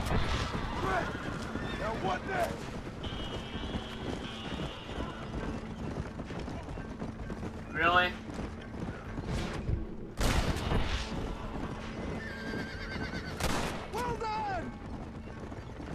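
Horse hooves clop steadily on a dirt road.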